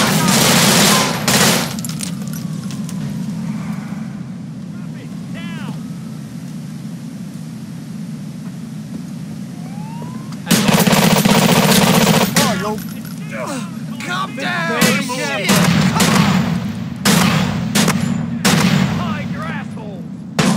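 Automatic gunfire rattles in loud, rapid bursts.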